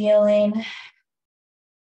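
A woman speaks calmly and briefly over an online call.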